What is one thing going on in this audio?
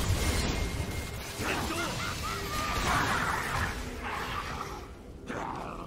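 Game weapons strike with sharp hits.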